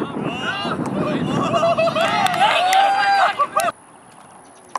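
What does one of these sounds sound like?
A crowd of young men and women cheers and shouts loudly outdoors.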